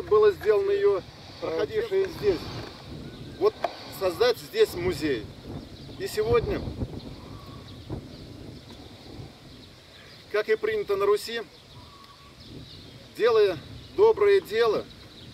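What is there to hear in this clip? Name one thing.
A middle-aged man speaks calmly and clearly in short phrases with pauses, outdoors.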